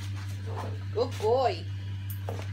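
A dog whines briefly in a high pitch.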